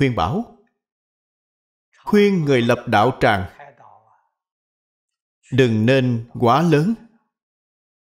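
An elderly man speaks calmly and slowly into a close microphone, with long pauses.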